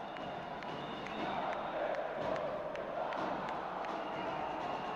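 Players on the bench clap their hands.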